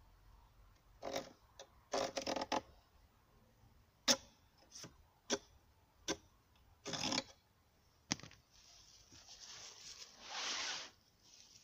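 A hand saw rasps back and forth through wood.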